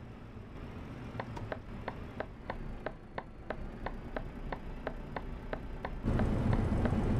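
A turn signal ticks evenly and quickly.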